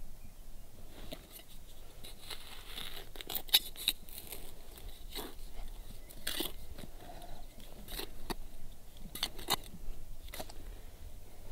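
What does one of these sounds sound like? A trowel scrapes and digs into dry soil.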